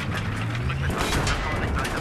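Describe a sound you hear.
A tank cannon fires with a loud blast.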